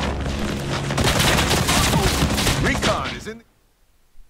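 Rifle shots crack loudly nearby.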